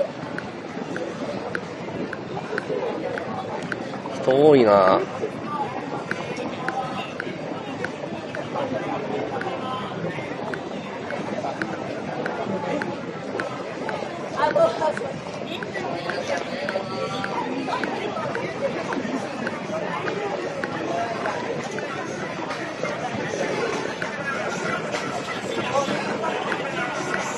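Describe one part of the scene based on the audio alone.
A busy street crowd murmurs all around outdoors.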